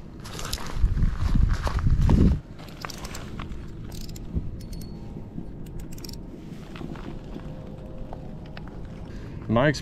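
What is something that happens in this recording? A fishing reel clicks and rattles as it is handled close by.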